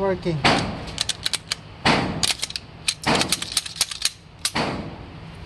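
A pistol clicks and rattles as it is handled.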